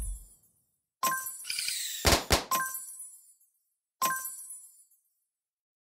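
Short bright game chimes ring out for a win.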